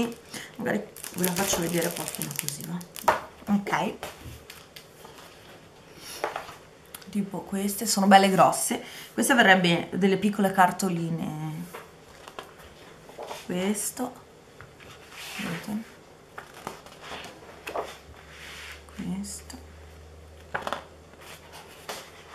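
Sheets of thick paper rustle and flap as they are turned over.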